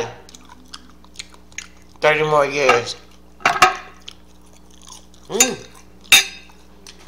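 A fork clicks against a plate.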